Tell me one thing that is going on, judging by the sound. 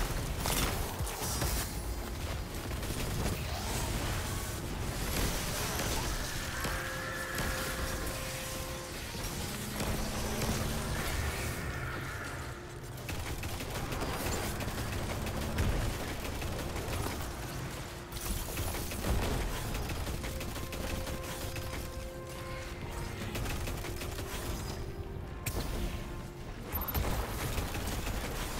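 Video game explosions and energy blasts rumble.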